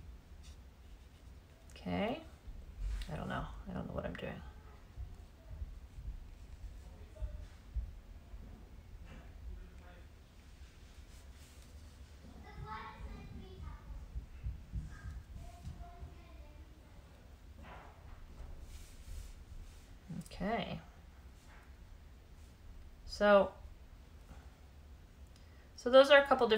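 A paintbrush dabs softly on paper.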